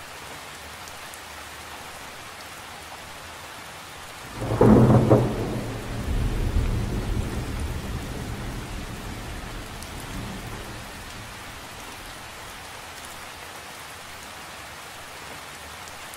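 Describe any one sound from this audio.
Rain patters steadily onto the surface of a lake.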